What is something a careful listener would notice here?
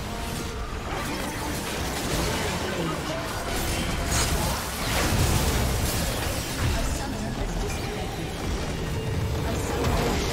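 Fantasy game spells crackle and burst in a busy fight.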